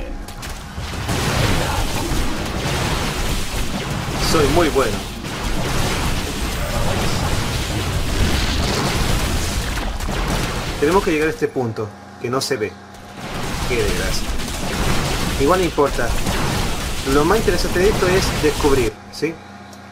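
Laser blasts and explosions crackle in a video game battle.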